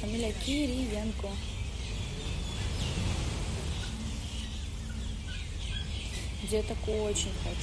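A young woman speaks calmly, close to a phone microphone.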